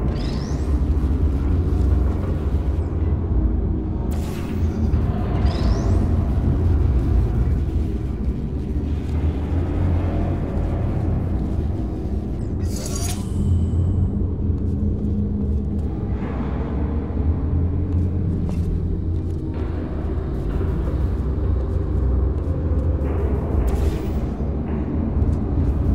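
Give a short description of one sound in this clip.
A portal gun fires with a short rising zap.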